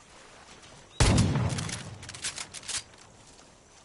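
A pistol fires a loud shot that echoes and rolls away.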